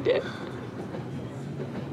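A young woman speaks tearfully close by.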